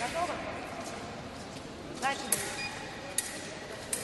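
Fencing blades clash and scrape together.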